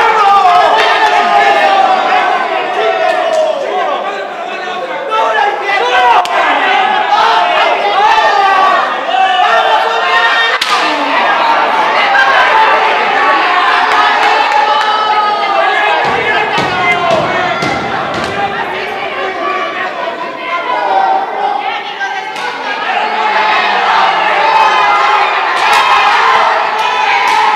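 A crowd of men and women shouts and cheers loudly all around.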